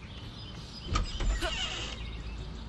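A wooden ladder knocks a woman to the ground with a thud.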